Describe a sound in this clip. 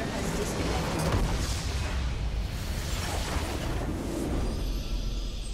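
A large structure explodes with a deep rumbling boom.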